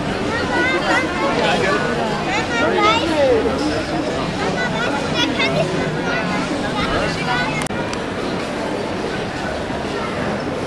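A crowd of people chatter outdoors nearby.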